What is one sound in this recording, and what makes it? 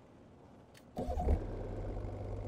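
A diesel truck engine cranks and starts.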